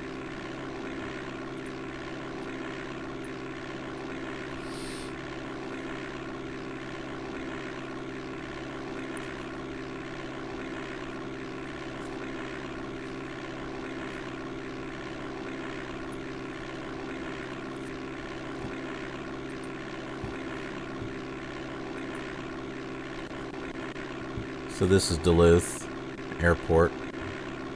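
A small propeller plane engine drones steadily.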